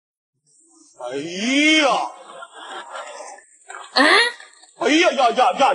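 A young woman groans and whines close by.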